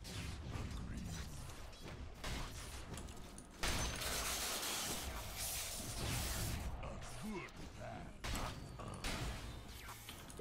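Magic spells and weapon strikes crackle and clash in a fast video game battle.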